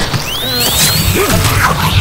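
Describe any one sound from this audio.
A young man shouts in panic.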